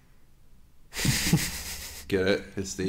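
A young man laughs loudly close to a microphone.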